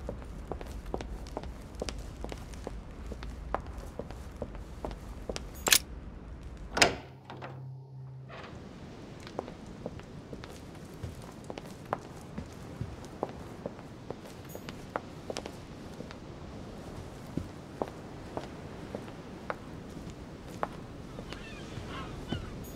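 Footsteps tap steadily on a hard floor in a large echoing room.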